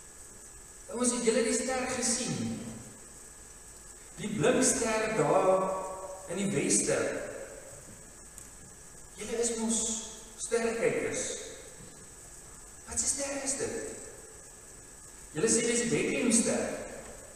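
A man speaks calmly into a microphone in an echoing hall, with long pauses.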